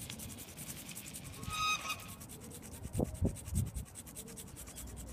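A coin scratches rapidly back and forth across a card.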